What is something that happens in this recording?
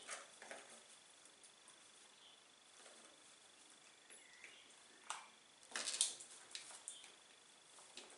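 A crow's beak clinks against a metal bowl.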